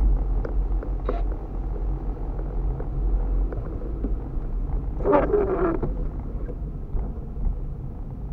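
Rain patters on the windshield.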